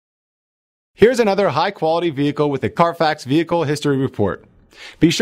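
A man speaks with enthusiasm into a close microphone.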